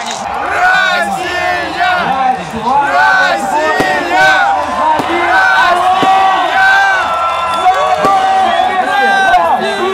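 Young men shout and cheer loudly close by.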